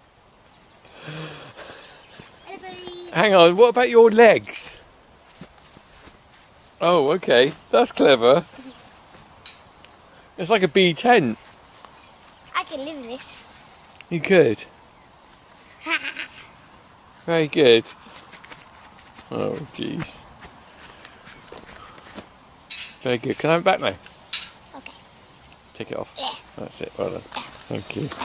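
A young boy speaks with animation close by, in short bursts.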